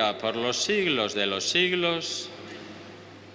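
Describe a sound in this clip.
An elderly man chants through a microphone in a large echoing hall, and his voice dies away into the echo.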